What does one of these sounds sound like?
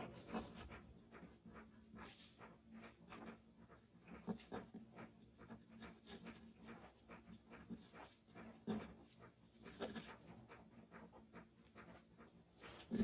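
A charcoal pencil scratches and taps lightly on paper.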